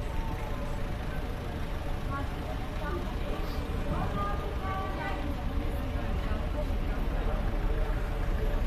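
Busy street traffic hums steadily outdoors.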